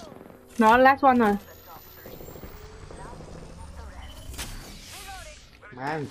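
An electric charge crackles and hums as a device powers up.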